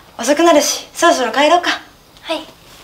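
Another young woman answers briefly and cheerfully.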